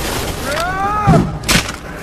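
A whip cracks sharply through the air.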